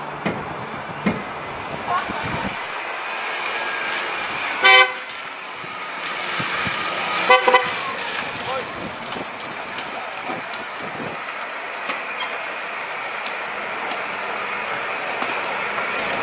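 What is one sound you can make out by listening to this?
A car engine rumbles as a car drives slowly up and then idles.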